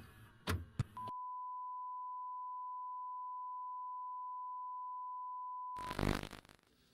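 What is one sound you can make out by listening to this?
A steady test tone beeps from a television.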